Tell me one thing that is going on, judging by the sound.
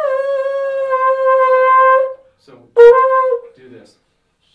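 A trombone plays a long held note up close.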